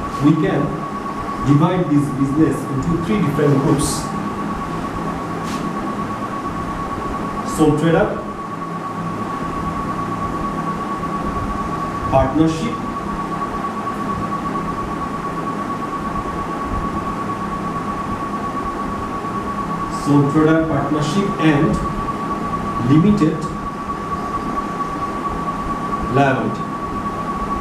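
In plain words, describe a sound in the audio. A man speaks calmly in short bursts with long pauses.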